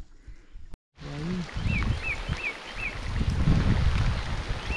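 Rain patters steadily on water and on a kayak.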